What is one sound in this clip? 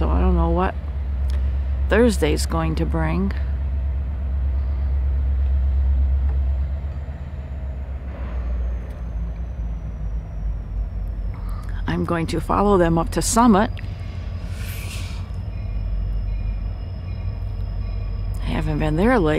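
A diesel locomotive engine rumbles low in the distance.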